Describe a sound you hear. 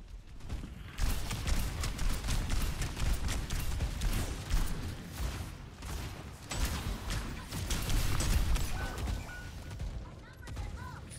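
Guns fire in rapid bursts with loud blasts.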